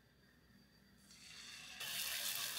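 Batter sizzles in a hot pan.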